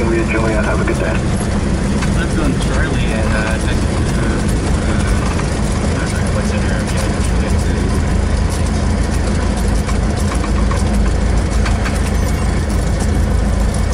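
A small propeller plane's engine drones loudly and steadily.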